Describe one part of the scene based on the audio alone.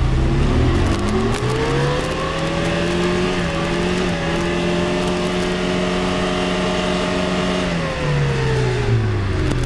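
An engine revs hard, rising and falling in pitch.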